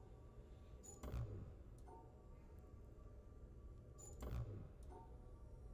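A low whooshing sweep sounds as a puzzle panel resets.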